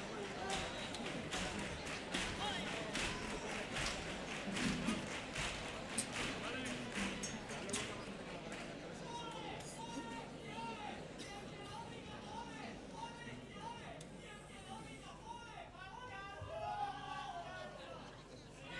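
A guitar strums along with the singers.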